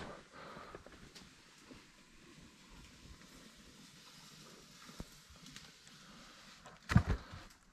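Bark scrapes and knocks against a climber's helmet.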